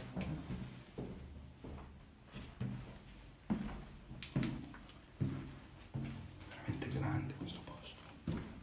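Footsteps thud steadily down concrete stairs.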